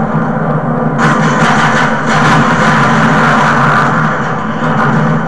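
A loud explosion roars from a game's speaker and rumbles away.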